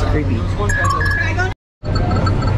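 An arcade machine plays electronic beeps and tones.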